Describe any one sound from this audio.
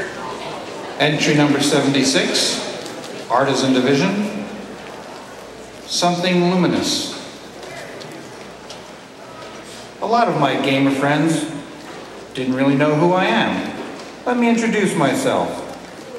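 A man speaks theatrically through a microphone in a large hall, in bursts with pauses.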